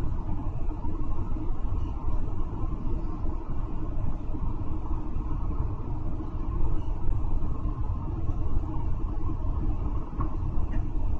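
A bus engine rumbles low and steady from inside the moving bus.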